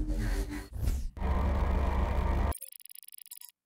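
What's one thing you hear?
A laser blast roars loudly.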